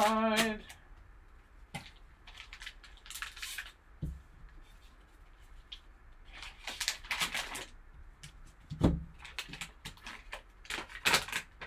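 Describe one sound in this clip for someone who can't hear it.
Plastic card wrappers crinkle and rustle between gloved hands.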